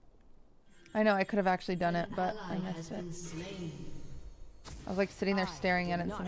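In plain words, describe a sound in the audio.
A young woman talks casually into a nearby microphone.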